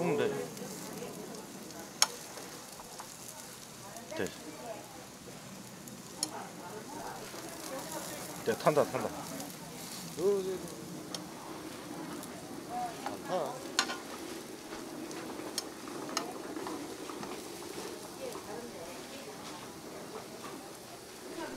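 Food sizzles gently in a hot pan.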